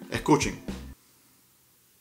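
A man speaks briefly and close to a microphone.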